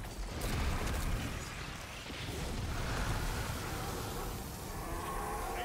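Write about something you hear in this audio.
Energy blasts crackle and hiss.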